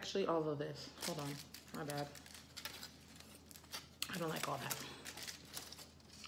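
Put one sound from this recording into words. Aluminium foil crinkles.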